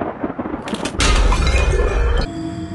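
Glass cracks and splinters sharply.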